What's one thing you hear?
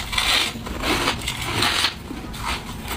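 A woman bites into shaved ice with a loud crunch.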